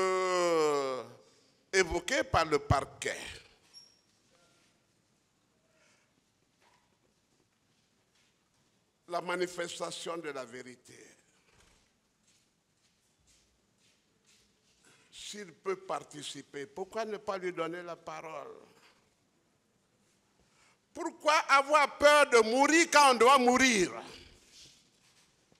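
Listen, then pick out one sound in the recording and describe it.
An elderly man speaks with emphasis into a microphone, in bursts separated by pauses.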